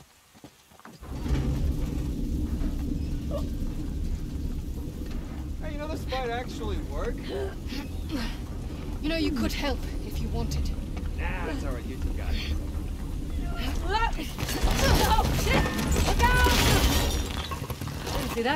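A heavy cart rumbles along metal rails.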